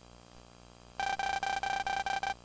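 Short electronic blips chatter rapidly in a quick, even rhythm.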